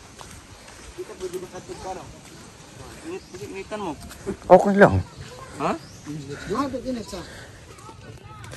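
Young men talk with each other nearby.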